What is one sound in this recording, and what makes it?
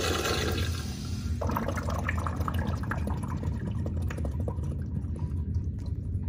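Water swirls and drains in a urinal bowl.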